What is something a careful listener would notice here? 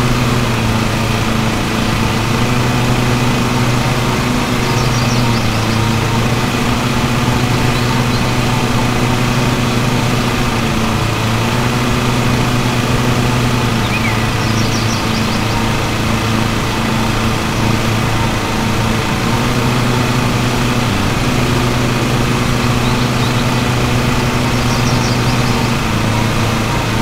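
A riding mower's engine hums steadily throughout.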